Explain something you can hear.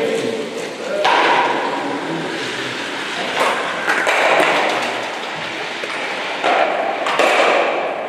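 An ice stock slides across a hard floor with a rough rushing scrape.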